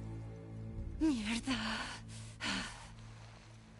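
A young woman curses under her breath.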